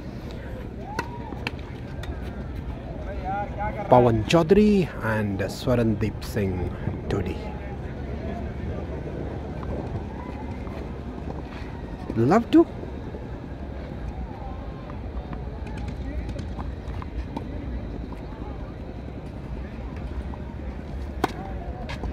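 A tennis ball is struck sharply with a racket, outdoors.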